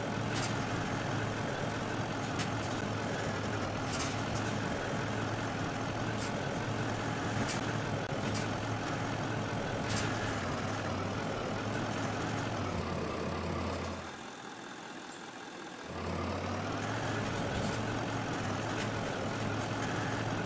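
Mud and gravel crunch under a truck's tyres.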